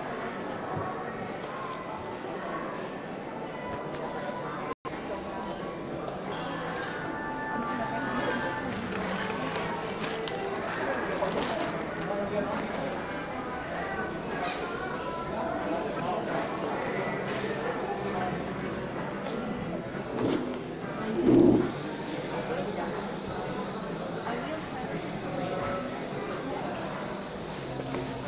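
Men and women chatter nearby in a busy indoor space.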